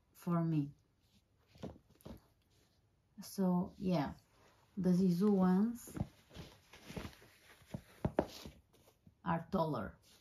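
Boots are set down on a wooden floor with soft thuds.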